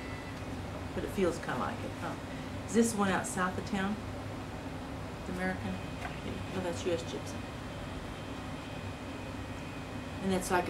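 An elderly woman speaks calmly and quietly close by.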